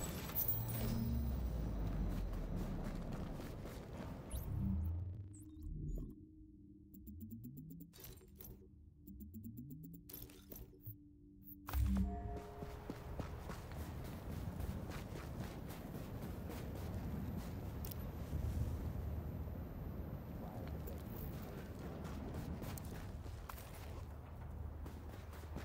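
Wind howls through a snowstorm outdoors.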